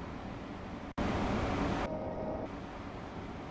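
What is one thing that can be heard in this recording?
A loud whoosh of air rushes in the driver's cab and then stops.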